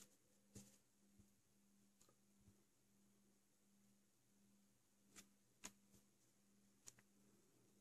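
Small plastic parts click and tap softly close by.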